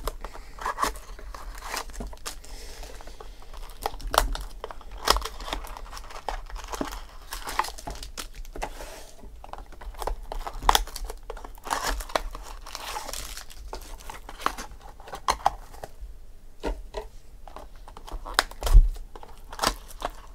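Foil wrappers crinkle and rustle as hands tear open card packs.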